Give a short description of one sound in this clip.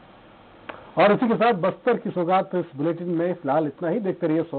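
A young man speaks clearly and steadily into a microphone.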